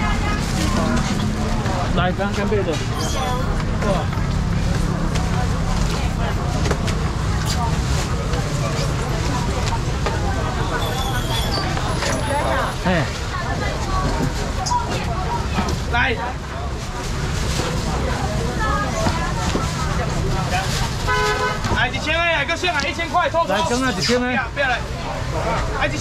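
A busy crowd chatters throughout.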